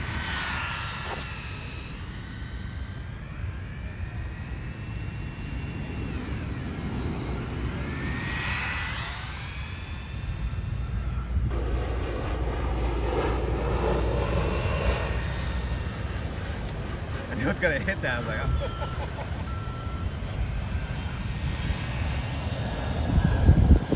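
Small tyres hiss and scrub on rough pavement.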